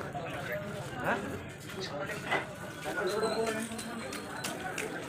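People's voices chatter nearby in a busy street.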